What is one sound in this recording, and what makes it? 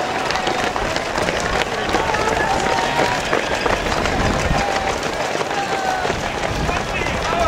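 Many running shoes patter on pavement.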